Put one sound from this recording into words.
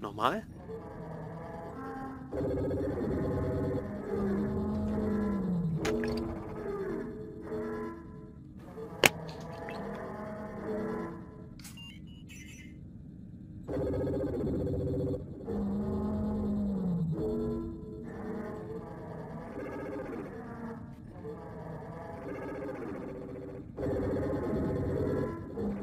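A synthesizer plays a short looping melody of plucked notes.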